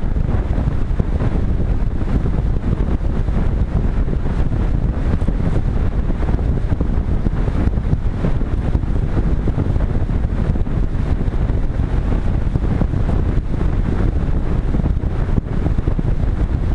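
Wind roars loudly and buffets steadily against a gliding aircraft.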